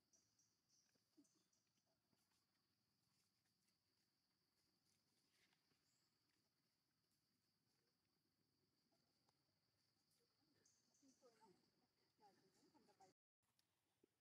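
Dry leaves rustle as a small monkey moves across the ground.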